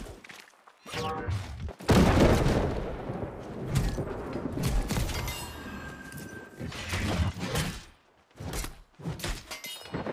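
Sword blows strike and thud in a fast fight.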